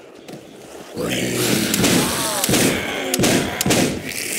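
A zombie growls and snarls nearby.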